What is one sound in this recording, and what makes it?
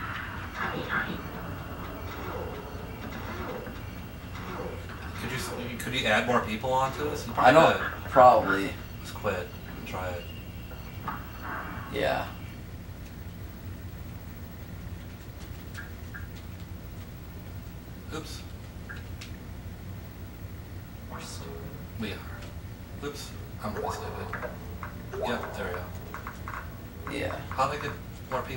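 Video game sound effects play through a television speaker.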